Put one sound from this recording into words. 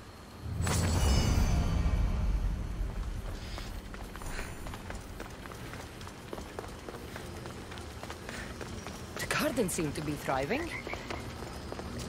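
Footsteps patter quickly on a stone floor.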